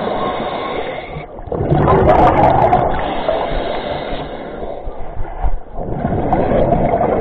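Water swirls and rushes with a dull, muffled underwater roar.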